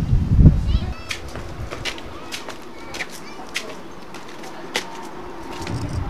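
Footsteps scuff on concrete stairs.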